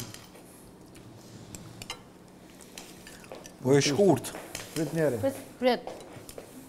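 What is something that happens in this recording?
Cutlery clinks faintly against plates.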